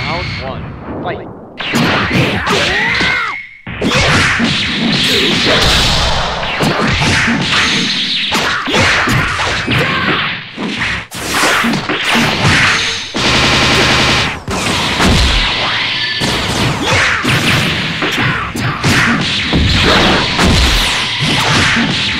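Energy blasts whoosh and crackle.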